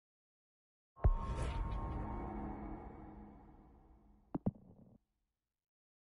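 A deep electronic whoosh swells and slowly fades.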